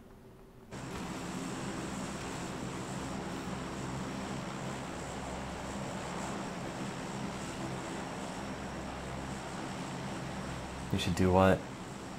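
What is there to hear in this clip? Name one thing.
Propeller engines of a large plane drone steadily.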